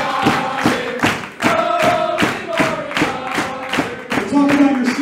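A crowd claps in rhythm in a large hall.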